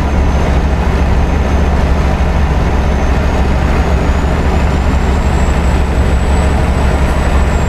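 Tyres roll steadily over a road.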